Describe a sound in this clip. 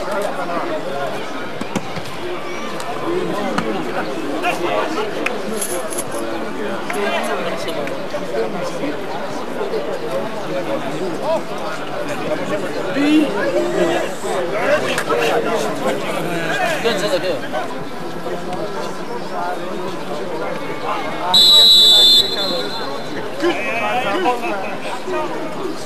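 Men shout to each other across an open field during a football match.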